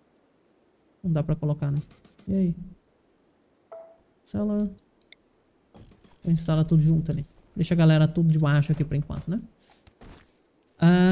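A young man talks casually and close to a microphone, in short bursts with pauses.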